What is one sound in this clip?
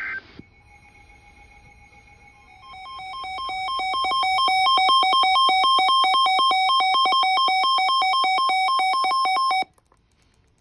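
A weather radio sounds a loud, rapidly pulsing electronic alert tone that swells and then cuts off.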